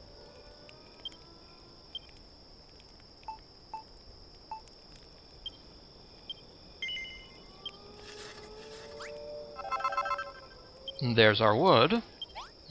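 Short soft blips sound as a game menu cursor moves.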